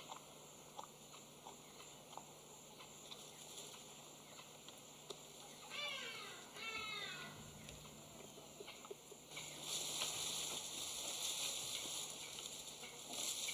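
A leopard chews and tears at meat.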